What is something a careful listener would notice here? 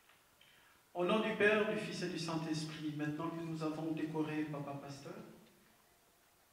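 A man speaks loudly into a microphone.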